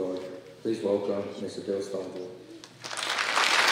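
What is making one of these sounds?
A young man speaks into a microphone over loudspeakers in a large hall.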